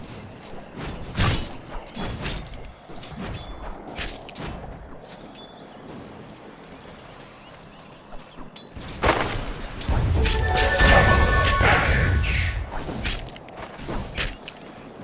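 Spell effects and weapon hits crackle and clash in a game battle.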